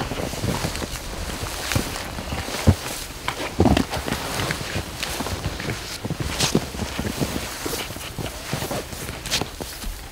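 Trekking poles thud into the snow.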